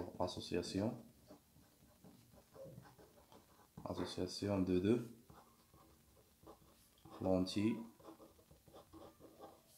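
A marker squeaks softly across paper.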